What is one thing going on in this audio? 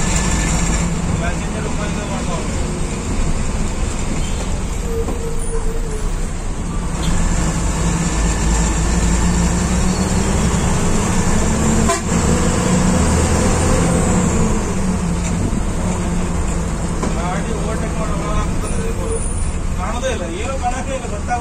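The bus rattles and creaks as it drives along the road.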